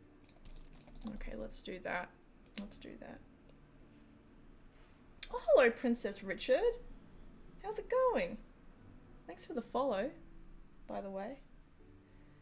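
A young woman talks casually into a close microphone, in short bursts with pauses.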